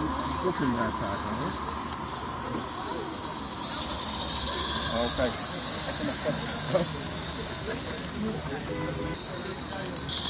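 People talk nearby outdoors.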